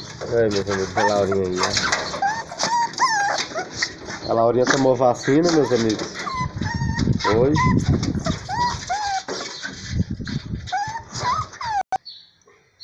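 A puppy whimpers and yelps in high, wavering cries close by.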